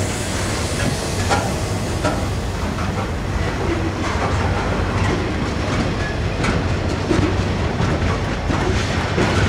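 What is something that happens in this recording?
Steel wheels clack over rail joints.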